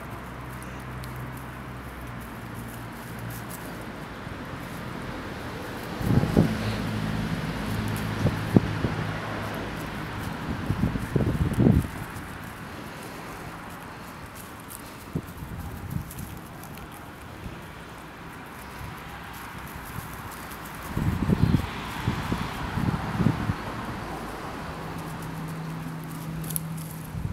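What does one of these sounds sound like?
A squirrel gnaws and nibbles on a piece of food close by.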